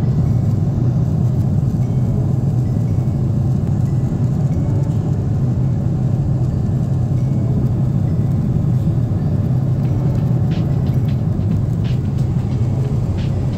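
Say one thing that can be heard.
A jet engine roars steadily in a low, constant drone inside an airplane cabin.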